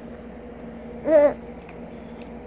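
A young child makes a short, wavering vocal sound close by.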